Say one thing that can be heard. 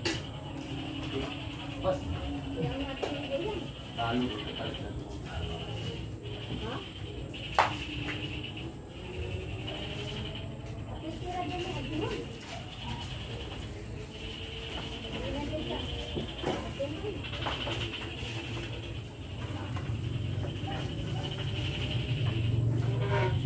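Men chat and call out nearby.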